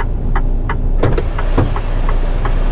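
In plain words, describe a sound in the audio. A bus door hisses open.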